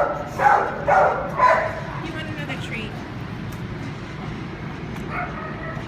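A dog licks and chews a treat from a hand.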